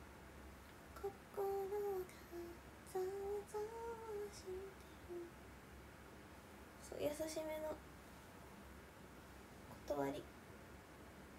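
A young woman speaks softly and playfully, close to the microphone.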